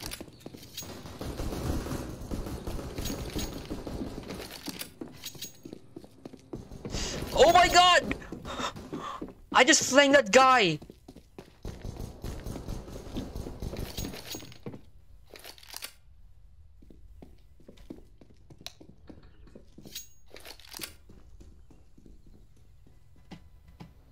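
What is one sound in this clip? Footsteps thud on wooden floors and stairs.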